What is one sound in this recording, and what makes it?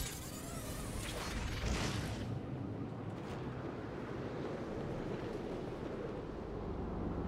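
Wind rushes loudly past, then settles into a low, steady rumble.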